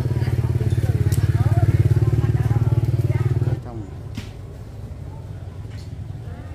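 Women chat nearby.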